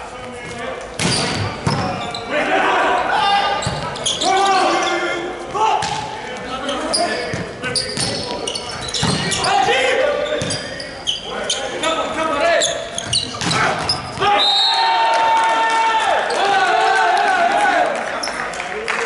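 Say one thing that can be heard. Young men shout and call out loudly in a large echoing hall.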